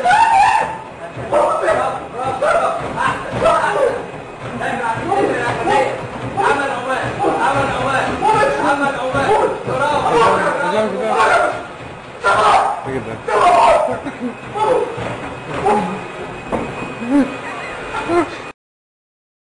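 A man talks loudly nearby.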